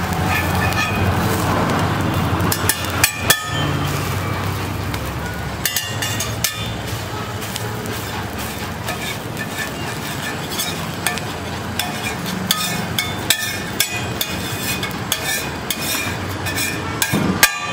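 Food sizzles on a hot griddle.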